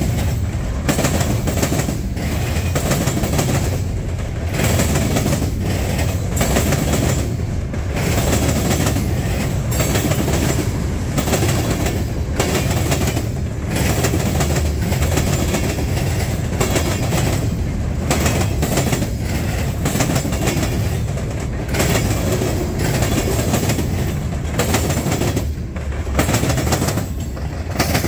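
Steel wheels clack rhythmically over rail joints.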